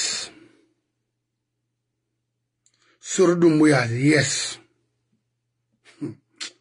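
An elderly man speaks calmly and close to a microphone, with short pauses.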